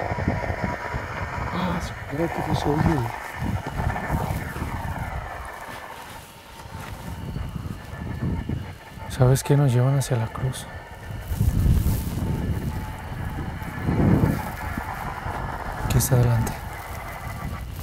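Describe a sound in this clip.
Men talk quietly outdoors at night.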